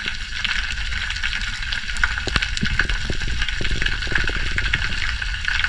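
Underwater crackling and clicking fills the water all around.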